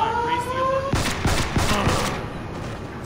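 Gunshots ring out in a quick burst.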